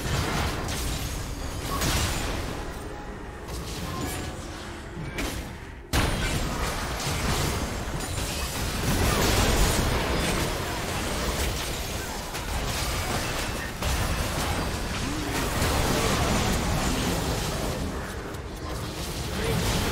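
Game spell effects and hits crash and clatter in a fast battle.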